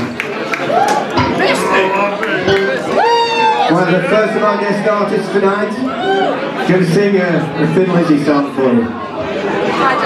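An elderly man sings loudly into a microphone.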